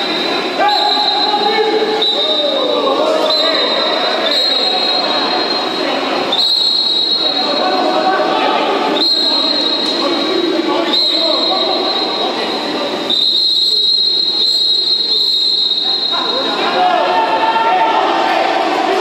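Players splash and churn the water of a pool.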